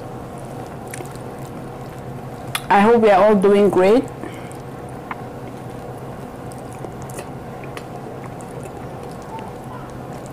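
Food squelches and clicks softly while being eaten.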